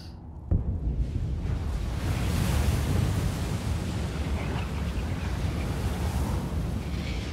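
A magical spell crackles and rumbles with a deep, steady roar.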